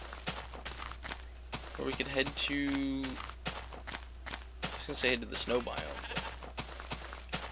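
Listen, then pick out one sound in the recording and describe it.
Footsteps crunch steadily over grass.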